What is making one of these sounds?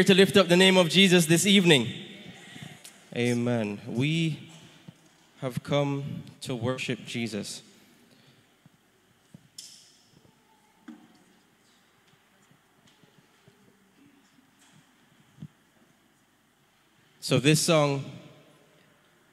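A young man speaks into a microphone over loudspeakers in an echoing hall.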